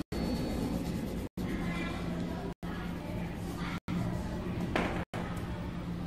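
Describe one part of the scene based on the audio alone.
Paper cards slide and rustle on a cloth surface.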